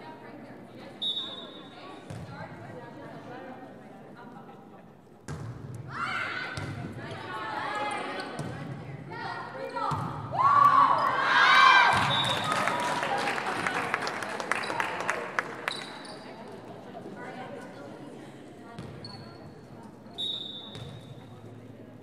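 A referee's whistle blows in short shrill blasts.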